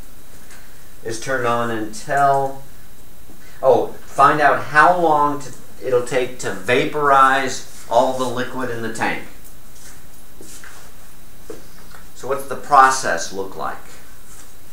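An elderly man speaks calmly, lecturing nearby.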